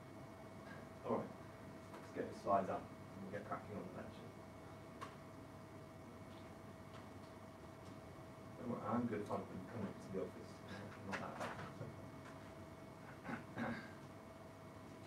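A young man speaks calmly at a distance in a room, with pauses.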